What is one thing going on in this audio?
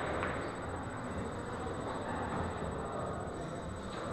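Billiard balls clack together on a pool table.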